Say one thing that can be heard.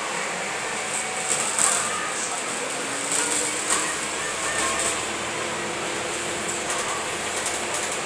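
The inside of a bus rattles and clatters while moving.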